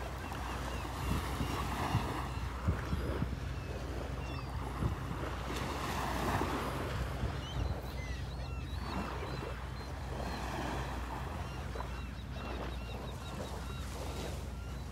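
Small waves lap gently onto a sandy shore.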